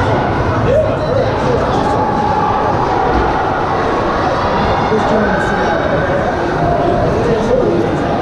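Ice skates scrape and hiss on ice.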